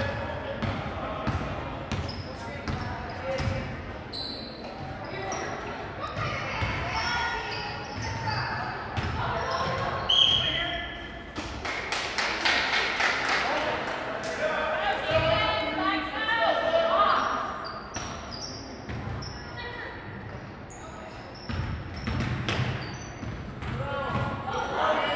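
A crowd of spectators cheers and chatters in an echoing gym.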